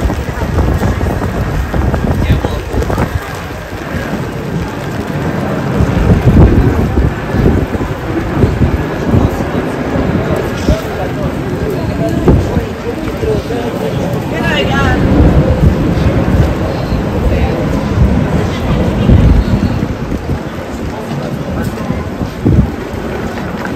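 A crowd of pedestrians murmurs outdoors.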